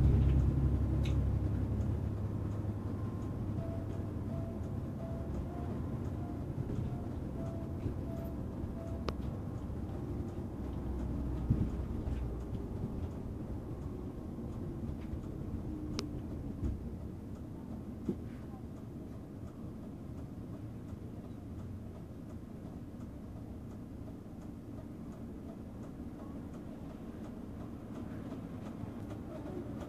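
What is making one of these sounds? A bus engine rumbles steadily from inside the cab as the bus drives along.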